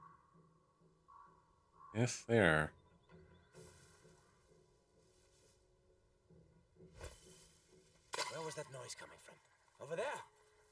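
Dry grass rustles softly as someone creeps through it.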